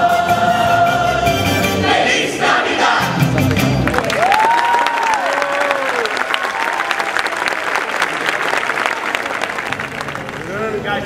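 A choir sings together in a large hall.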